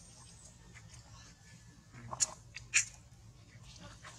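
A macaque chews on fruit.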